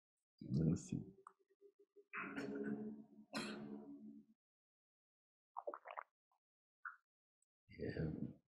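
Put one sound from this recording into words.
An older man speaks calmly into a microphone, with pauses.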